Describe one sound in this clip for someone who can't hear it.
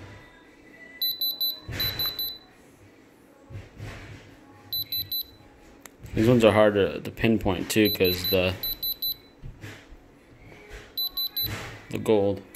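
A diamond tester beeps in quick bursts of short, high electronic pulses.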